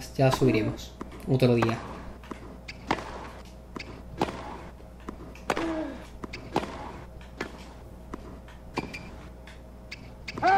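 A tennis ball is hit back and forth with rackets, with sharp pops.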